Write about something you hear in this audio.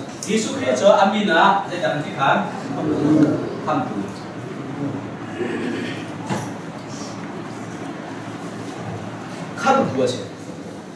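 A man speaks in a raised voice, a little distant in an echoing room.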